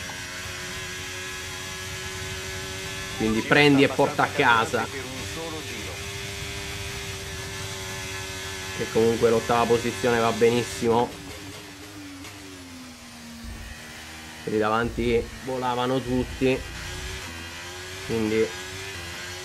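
A racing car engine whines steadily at high revs, dropping in pitch as it slows for a corner and rising again.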